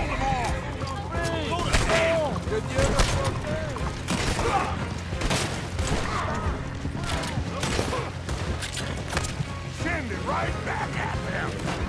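Horse hooves clatter and pound on a dirt road.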